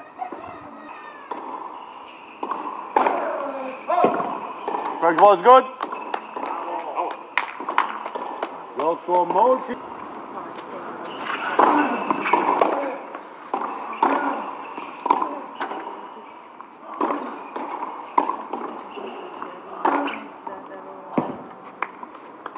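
A tennis ball is struck back and forth with rackets in sharp, hollow pops.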